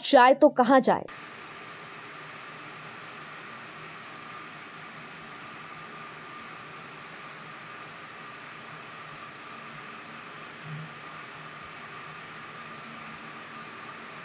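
Machinery hums steadily.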